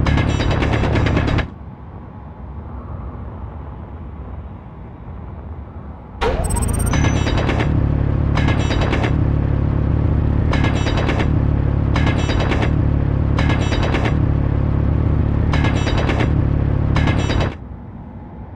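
A mining drill grinds with a loud, deep rumble and rhythmic bursts.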